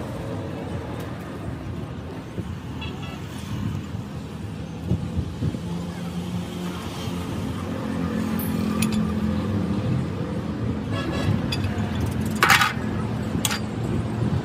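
A metal hub cap grates and clinks as it is unscrewed by hand from a truck wheel hub.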